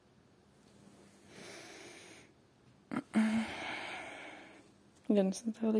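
A blanket rustles softly.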